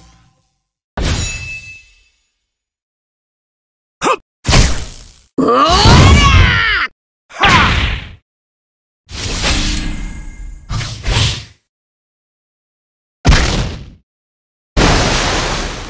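Game sound effects of hits and blasts burst out in short, loud bursts.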